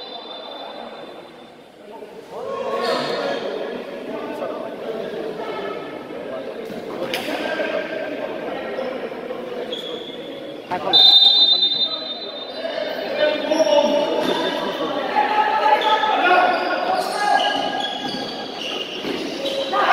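A basketball bounces.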